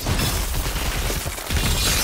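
Heavy blows land in a close fight.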